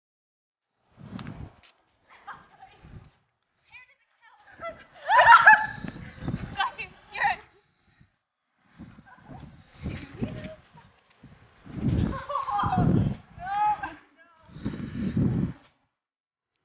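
Young women laugh and shriek close by, outdoors.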